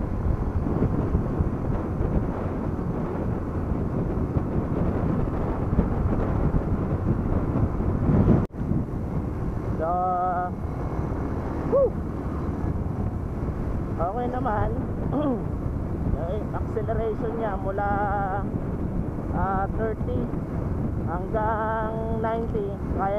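Wind rushes and buffets loudly past.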